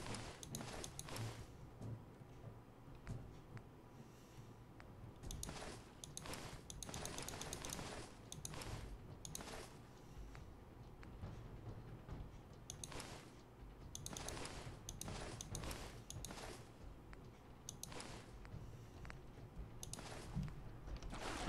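Short menu clicks tick repeatedly.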